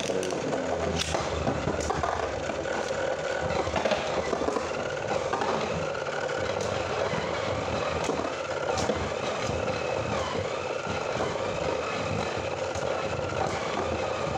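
Spinning tops clack sharply against each other and the dish's rim.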